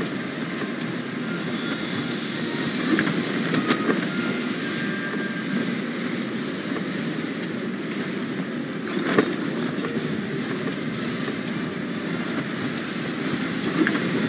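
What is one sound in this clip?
A ship rushes steadily through the air with a whooshing wind.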